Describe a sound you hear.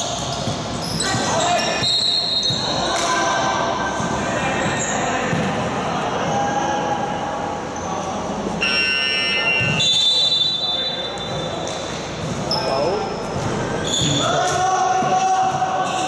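Young men call out to each other across the court.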